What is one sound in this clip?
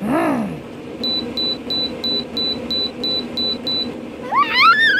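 A remote control beeps several times in quick succession.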